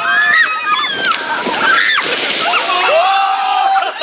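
Water splashes loudly over the riders.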